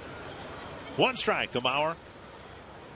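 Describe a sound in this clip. A man in the crowd shouts loudly.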